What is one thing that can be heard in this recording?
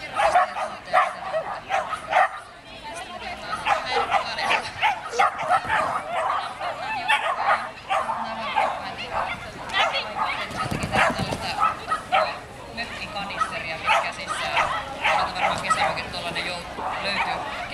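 A woman calls out commands to a dog while running.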